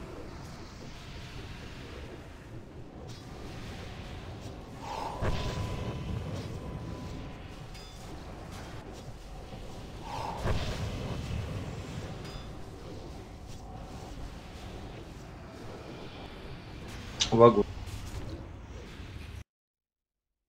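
Magic spells crackle and boom in a noisy fantasy battle.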